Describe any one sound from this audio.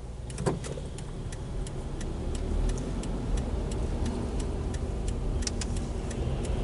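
A car engine hums and rises as the car pulls away.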